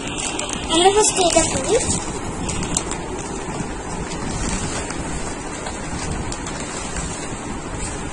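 A paper bag rustles and crinkles as it is opened.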